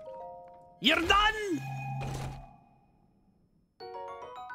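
A wooden chest creaks open, followed by a bright chime.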